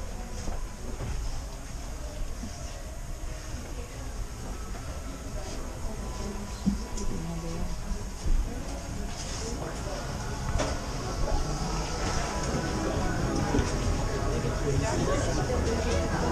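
Several people talk in the background of an indoor crowd, with a busy murmur that grows louder.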